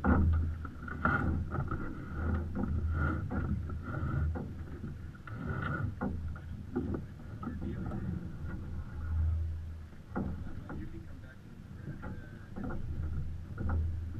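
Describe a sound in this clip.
Water splashes and rushes against a sailboat's hull.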